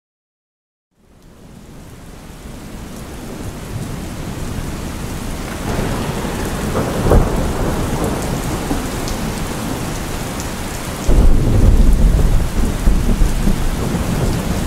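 Thunder rumbles and booms.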